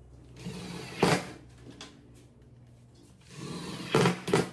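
A power drill whirs in short bursts as it drives screws into wood.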